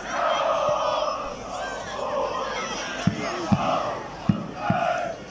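A large crowd of fans chants loudly together outdoors.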